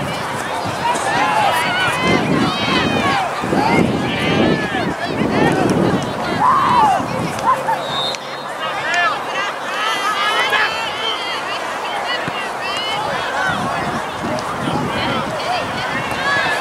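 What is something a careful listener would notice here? Young players shout and call out to each other across an open outdoor field.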